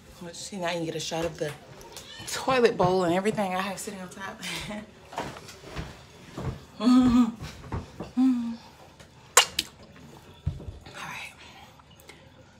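A young woman talks and sings playfully close to a microphone.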